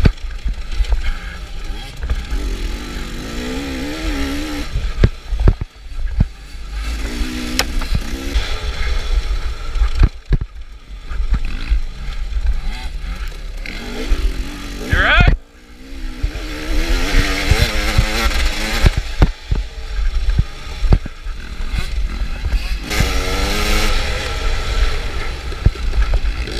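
A dirt bike engine revs and roars up close, rising and falling as it changes gear.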